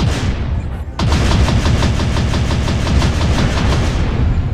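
Rapid gunfire rattles steadily.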